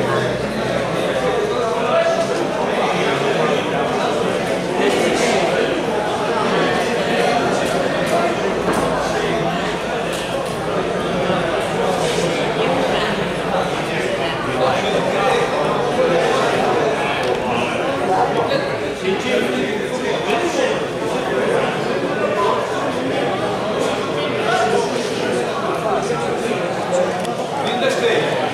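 Several men talk and chatter nearby, with a slight echo.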